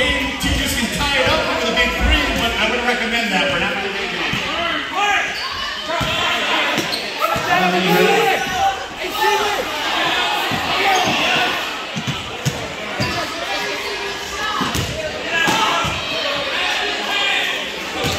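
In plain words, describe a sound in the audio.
A basketball bounces on a wooden floor in an echoing gym.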